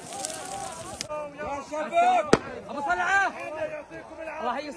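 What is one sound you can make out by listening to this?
A crowd of men shouts in the distance outdoors.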